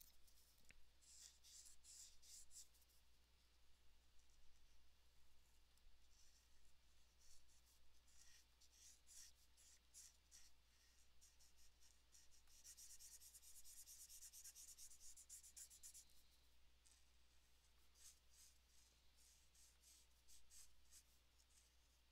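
A marker tip scratches and squeaks on paper.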